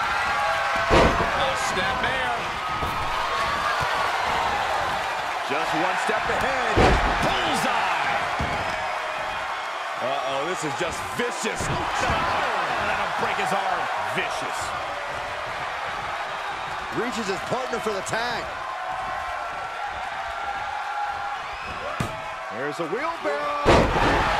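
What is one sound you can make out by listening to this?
Bodies slam heavily onto a wrestling mat.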